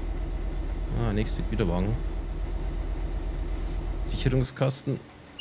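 A train engine rumbles steadily.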